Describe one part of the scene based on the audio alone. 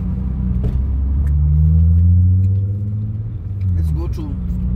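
A car engine revs up as the car pulls away.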